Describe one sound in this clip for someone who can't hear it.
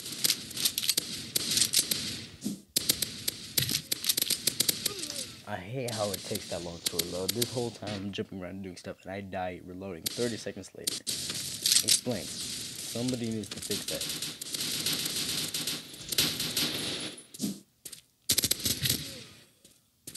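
Rapid bursts of gunfire rattle.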